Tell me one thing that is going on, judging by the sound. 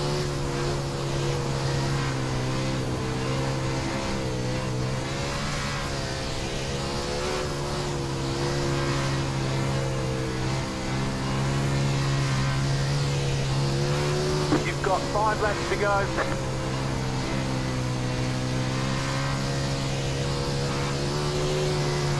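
A race car engine drones steadily, its pitch wavering as the car speeds around a dirt track.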